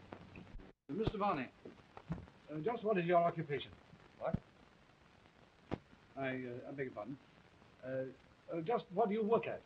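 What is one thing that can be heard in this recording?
A middle-aged man speaks in a low, earnest voice.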